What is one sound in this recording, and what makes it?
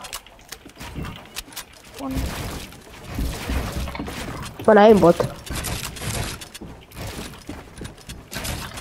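Wooden panels clack and thud into place in quick bursts.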